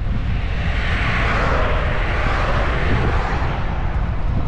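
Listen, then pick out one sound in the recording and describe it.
A car drives past close by on the road.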